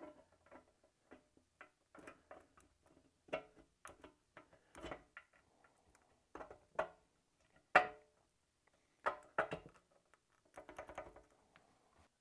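Metal parts click and clatter as they are handled.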